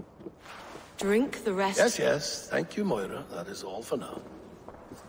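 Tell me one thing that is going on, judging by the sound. An older man answers in a deep, gruff voice.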